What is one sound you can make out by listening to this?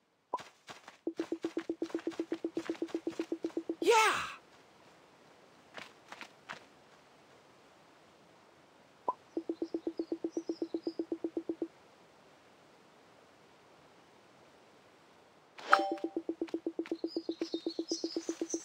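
Rapid, even electronic blips chirp as game dialogue text types out.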